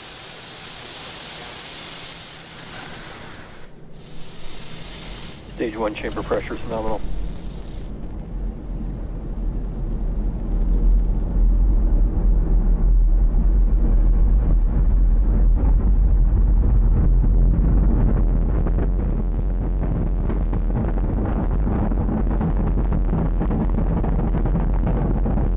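A rocket engine roars with a deep rumble that grows louder.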